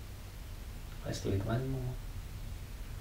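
A man speaks calmly and softly, close by.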